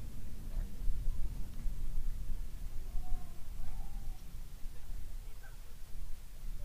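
Wind rumbles steadily across an open outdoor space.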